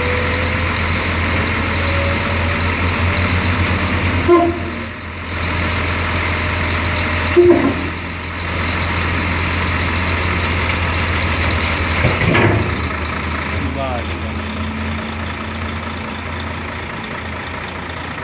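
A diesel truck engine idles.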